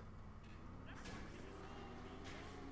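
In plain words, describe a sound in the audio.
A car scrapes and knocks against a metal pole.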